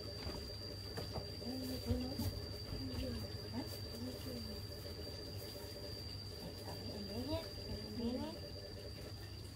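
A young woman speaks softly and playfully up close.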